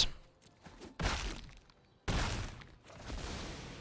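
A game's attack effect whooshes and thuds.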